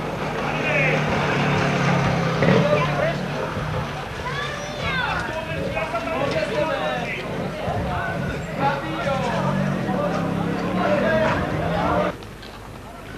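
Men and women talk and call out in a crowd nearby.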